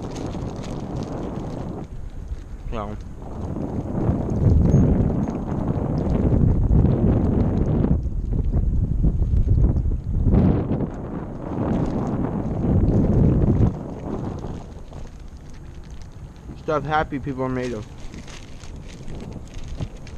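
Wind blows roughly outdoors.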